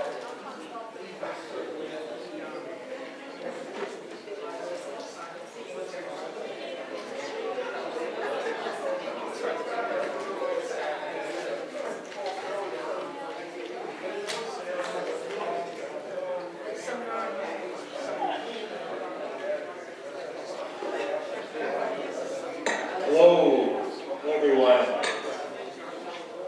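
A man speaks steadily into a microphone, heard through loudspeakers in an echoing hall.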